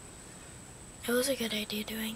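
A young woman speaks close by, brightly and with animation.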